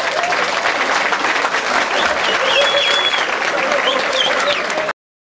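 Many people clap their hands rhythmically.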